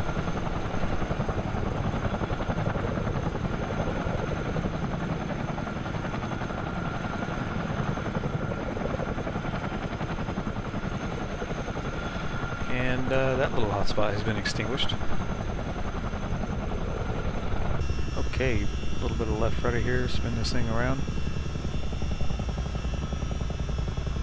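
A helicopter's rotor thumps and roars steadily overhead.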